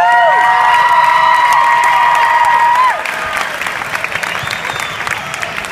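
A crowd cheers and screams loudly in a large echoing hall.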